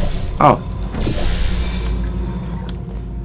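A portal opens with a fizzing whoosh.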